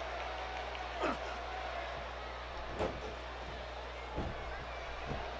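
Blows thud on a wrestler.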